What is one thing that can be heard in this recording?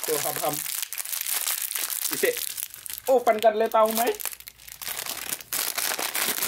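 A plastic wrapper crinkles and rustles as hands squeeze and tear it.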